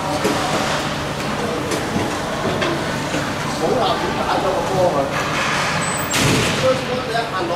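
Children shout and call out across the rink.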